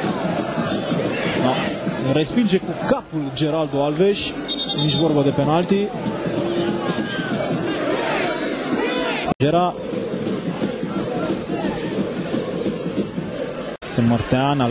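A large stadium crowd roars and chants throughout.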